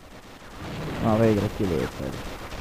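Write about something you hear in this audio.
A cannon shell explodes with a loud blast.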